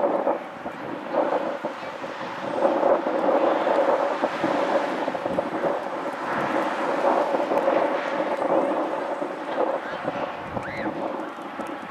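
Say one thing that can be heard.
Spectators talk and call out nearby outdoors.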